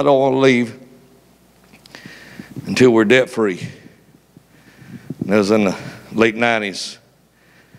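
A man preaches with animation into a microphone in a large echoing hall.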